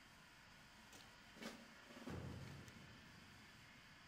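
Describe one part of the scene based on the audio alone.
A soft click sounds as a game menu opens.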